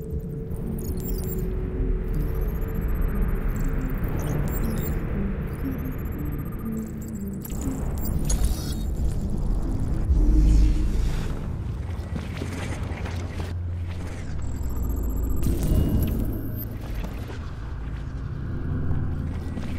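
Soft electronic interface tones chime and whoosh.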